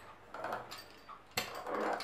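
A pastry wheel rolls across a sheet of dough.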